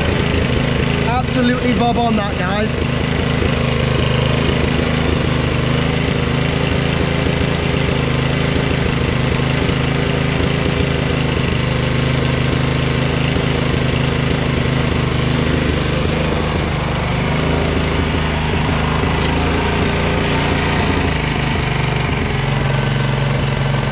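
A small engine hums steadily close by.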